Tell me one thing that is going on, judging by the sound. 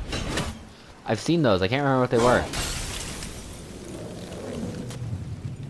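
A magical burst rings out and hisses away.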